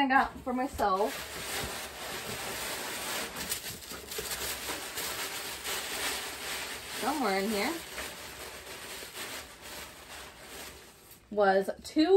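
Tissue paper rustles and crinkles.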